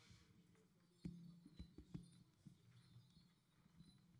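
Feet stamp heavily on a wooden stage.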